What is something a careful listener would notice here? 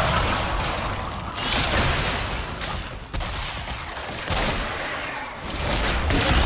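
Magic blasts whoosh and crackle in a fast game battle.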